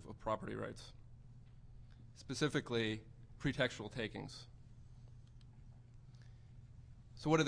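A young man speaks into a microphone in short bursts, pausing between phrases.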